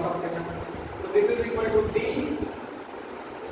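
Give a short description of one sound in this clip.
A man speaks calmly, lecturing in a slightly echoing room.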